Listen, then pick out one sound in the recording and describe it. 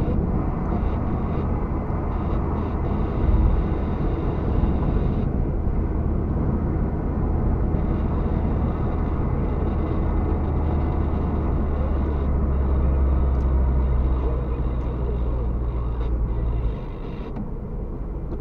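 A car drives along an asphalt road, with engine and road noise heard from inside.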